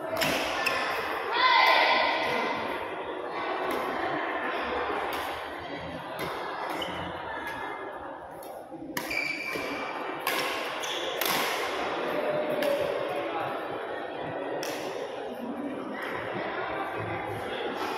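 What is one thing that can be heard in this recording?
Children shout and call out around the hall.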